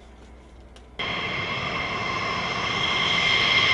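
A jet engine roars loudly and steadily as a jet fighter taxis.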